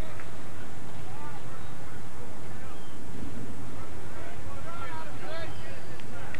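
Young men shout to each other across an open field in the distance.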